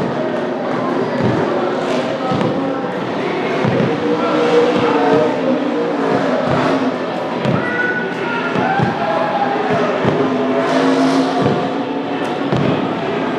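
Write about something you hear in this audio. A race car engine revs and roars in the distance.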